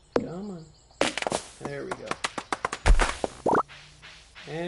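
A tree falls with a loud crash.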